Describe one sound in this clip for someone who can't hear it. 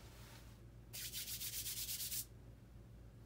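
A man rubs his hands together.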